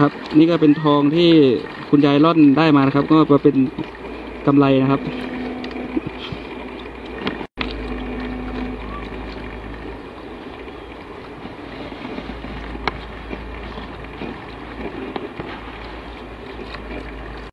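Water swishes and sloshes in a wide metal pan.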